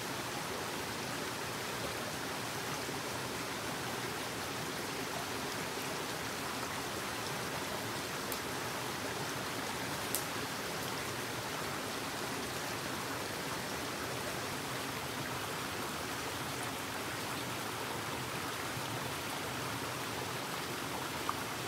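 A shallow stream trickles and splashes over rocks nearby.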